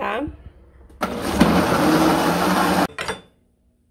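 A blender whirs loudly, blending.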